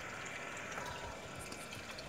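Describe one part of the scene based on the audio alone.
A buffalo laps water from a trough.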